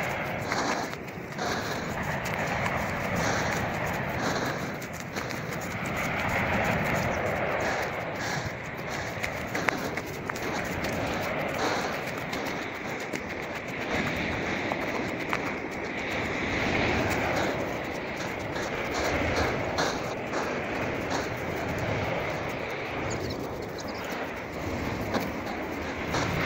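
Wind rushes steadily across the microphone outdoors.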